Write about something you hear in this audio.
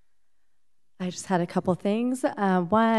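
A woman speaks calmly into a microphone, heard over a room's loudspeakers.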